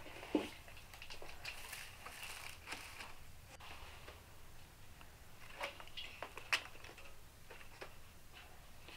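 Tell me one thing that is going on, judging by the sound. Metal pots clink and clatter on a stove.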